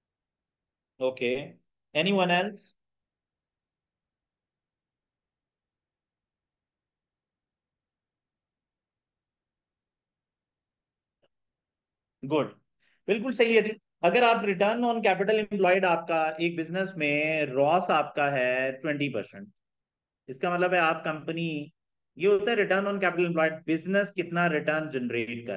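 A young man speaks calmly into a close microphone, explaining.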